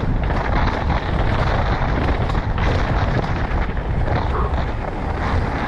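Wind rushes loudly past a helmet.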